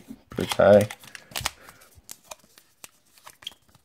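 Trading cards rustle and flick as hands shuffle them.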